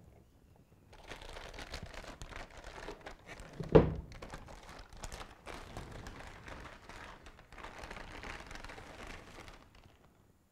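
A plastic bag rustles and crinkles in someone's hands.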